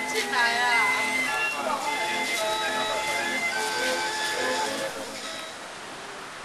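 A man plays a twangy, bowed one-string instrument with a bright melody.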